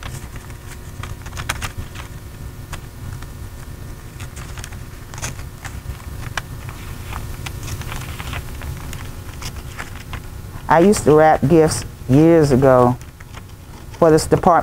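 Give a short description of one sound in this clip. Scissors snip and slice through paper.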